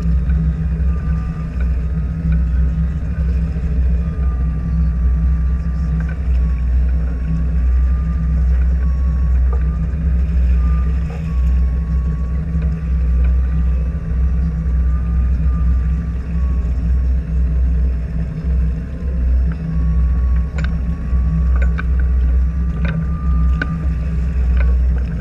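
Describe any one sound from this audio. Wind blows and rumbles across the open water.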